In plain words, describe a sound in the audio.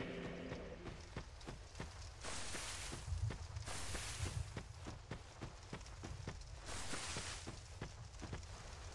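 Heavy armored footsteps thud quickly on dirt and grass.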